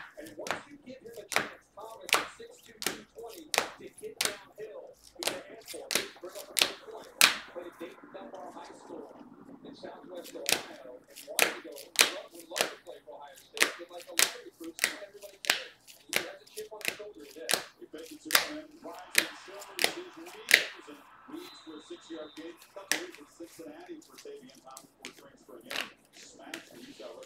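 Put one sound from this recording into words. Hard plastic card cases click and tap against each other in quick succession.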